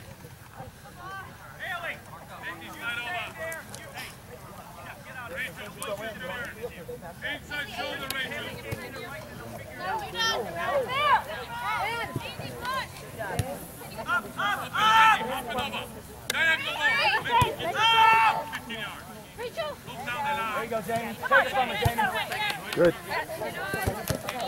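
Spectators close by shout and cheer with animation, outdoors.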